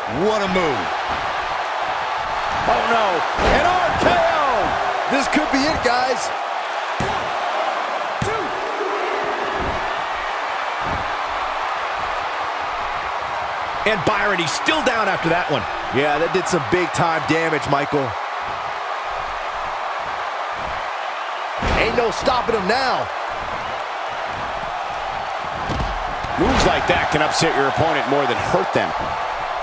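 A large crowd cheers steadily in an arena.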